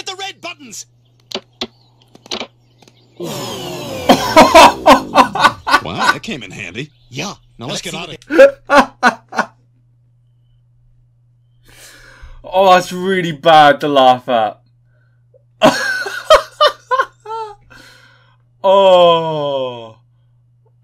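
Cartoon men speak with animation.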